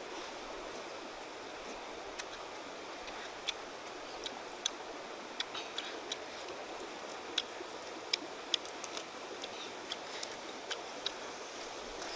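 A young woman chews food with soft wet smacking sounds close by.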